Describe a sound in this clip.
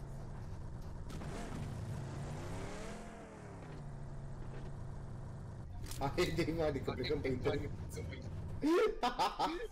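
A car engine rumbles steadily, then stops.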